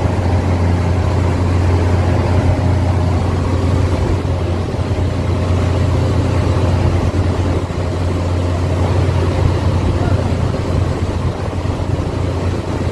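A ship's engine drones low and steady.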